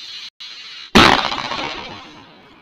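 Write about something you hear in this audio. A firecracker bursts with a sharp, loud bang outdoors.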